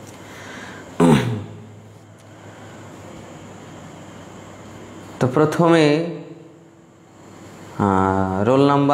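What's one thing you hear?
A man chants in long, sung phrases close to a microphone.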